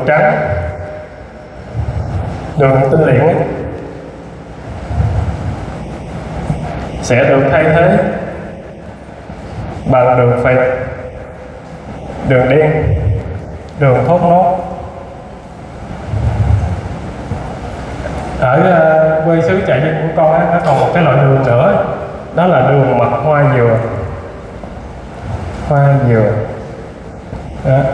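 A man gives a lecture through a microphone and loudspeakers in a large echoing hall, speaking in calm, measured phrases.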